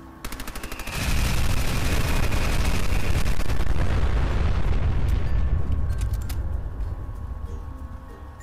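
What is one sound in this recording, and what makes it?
A huge explosion booms and rumbles, then slowly fades.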